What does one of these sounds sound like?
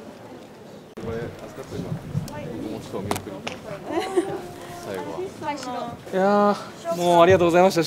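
Young men and women talk and chatter nearby in a busy crowd.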